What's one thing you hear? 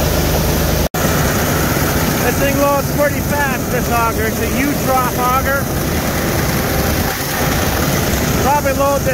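Grain pours from an auger spout into a grain trailer.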